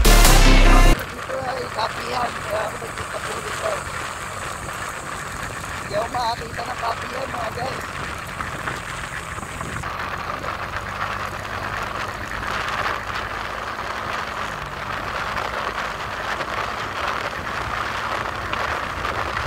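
Wind rushes past outdoors.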